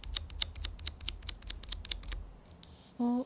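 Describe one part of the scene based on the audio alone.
Fingers tap and rub against a plastic bottle.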